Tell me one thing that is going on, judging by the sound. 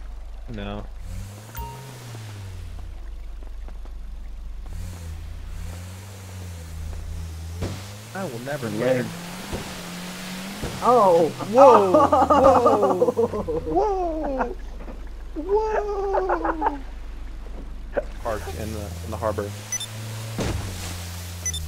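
A boat's outboard motor drones and rises and falls in pitch.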